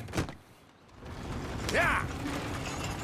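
A horse-drawn coach rolls away.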